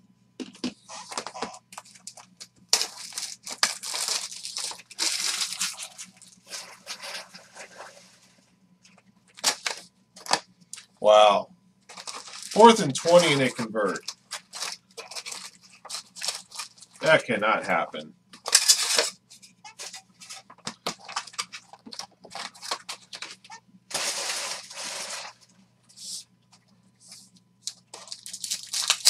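Cards and plastic wrappers rustle and crinkle as they are handled.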